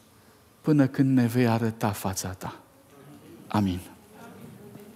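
A man speaks into a microphone with animation in a large room.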